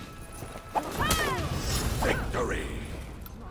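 A warrior grunts and cries out in pain.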